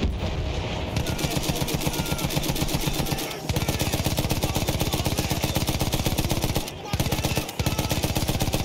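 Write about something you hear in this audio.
A machine gun fires in rapid, steady bursts.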